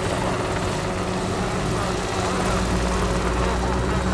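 A model helicopter buzzes overhead with a steady high whine.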